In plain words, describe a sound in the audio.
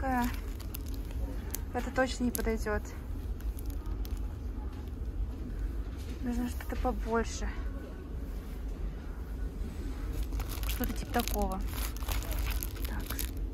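Plastic packets rustle and crinkle as a hand handles them.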